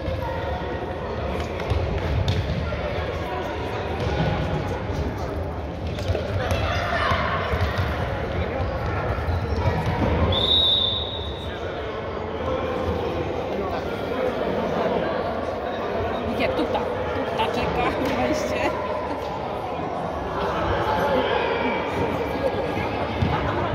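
Young boys shout to each other across a large echoing hall.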